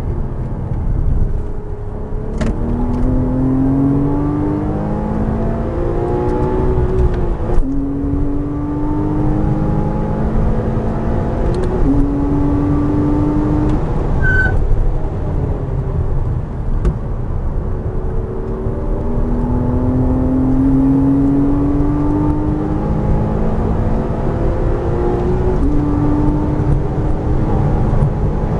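Tyres rumble over the track.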